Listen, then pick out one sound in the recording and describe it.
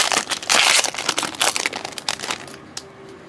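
A foil wrapper crinkles and rustles as it is handled.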